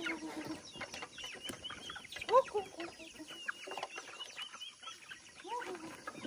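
Chickens cluck.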